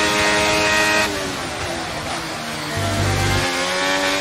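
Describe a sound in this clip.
A racing car engine drops in pitch as the car brakes hard for a corner.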